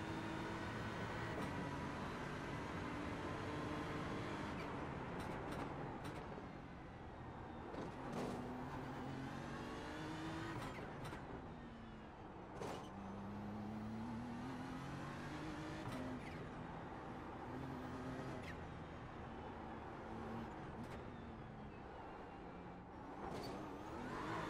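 Tyres squeal through corners.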